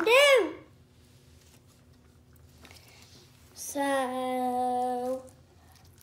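Slime squelches under a boy's fingers.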